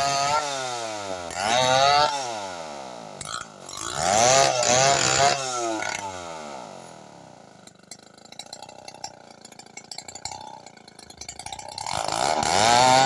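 A chainsaw engine revs up and down and idles close by.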